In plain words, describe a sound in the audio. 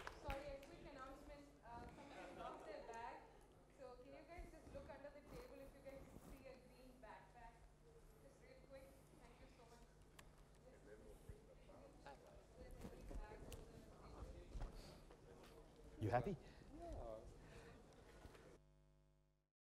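A man speaks to an audience through a microphone in a large room.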